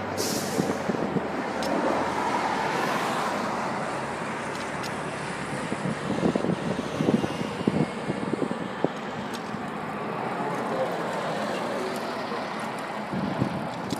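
Steady traffic noise hums outdoors.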